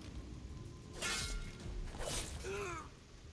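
A blade slashes through the air with sharp swishes.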